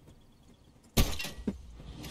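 A rifle shot cracks sharply.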